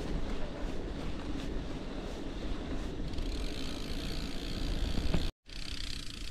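Bicycle tyres roll and crunch over a dirt track.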